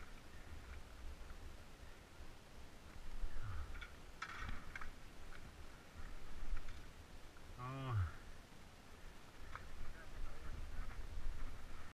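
Bike parts rattle and clack over bumps.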